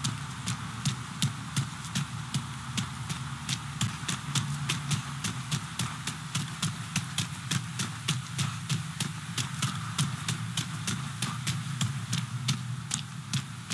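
Footsteps run quickly and steadily over hard ground.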